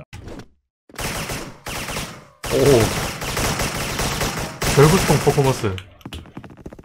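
Gunshots fire in short, loud bursts.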